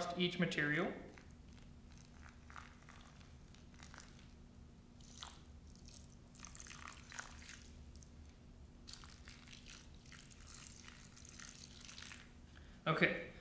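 Water pours in a thin stream onto soil.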